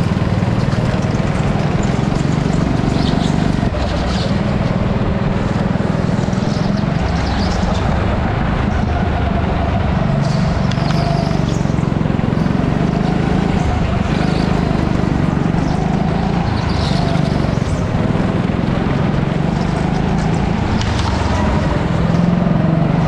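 A go-kart engine drones loudly up close, rising and falling in pitch as it speeds up and slows down.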